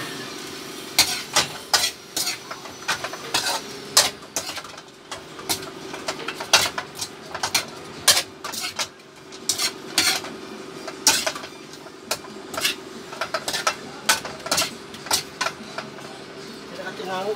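A metal spatula clanks and scrapes against a wok.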